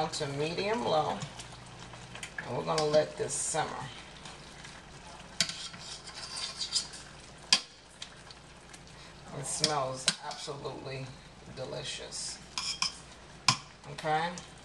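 Metal tongs clink against a frying pan.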